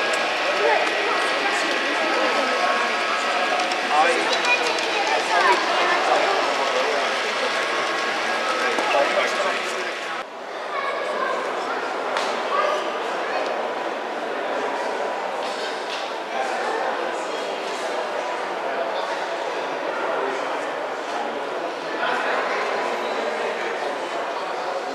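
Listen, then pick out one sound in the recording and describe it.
A crowd of men and women chatters all around.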